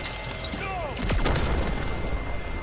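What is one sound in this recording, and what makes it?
A huge energy blast roars and crackles.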